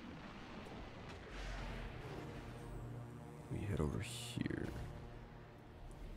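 A sci-fi energy weapon fires with a sharp, hissing blast.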